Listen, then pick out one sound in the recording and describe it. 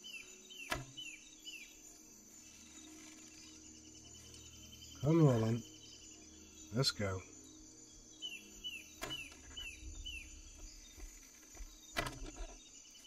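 A bowstring snaps as arrows are loosed, again and again.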